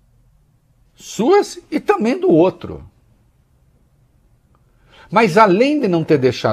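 A middle-aged man speaks with animation into a close microphone, pausing between phrases.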